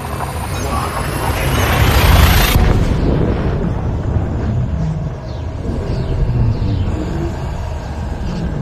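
A low engine rumble hums steadily.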